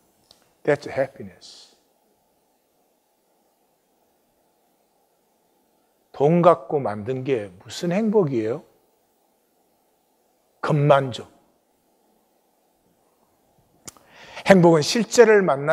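An elderly man speaks calmly and slowly through a microphone, with long pauses.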